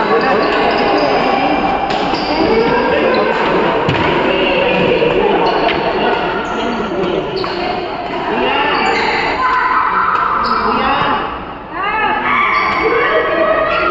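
Badminton rackets smack a shuttlecock.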